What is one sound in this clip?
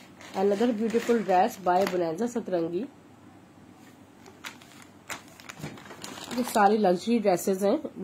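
A plastic wrapper crinkles as it is handled.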